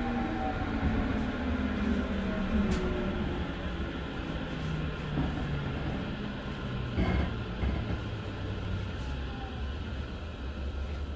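A train rumbles and hums steadily along the tracks.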